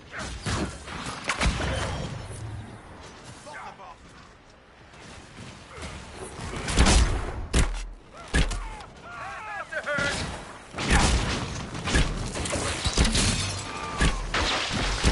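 Weapons strike and clash in quick, sharp hits.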